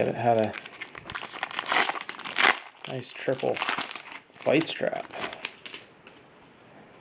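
A foil wrapper crinkles and tears as hands open it.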